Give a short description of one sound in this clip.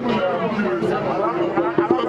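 A young man sings out loudly nearby.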